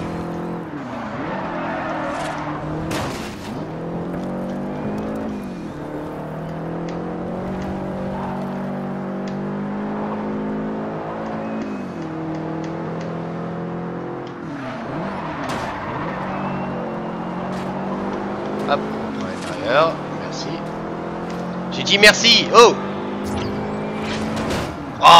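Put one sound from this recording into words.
A racing car engine roars, revving up and down through the gears.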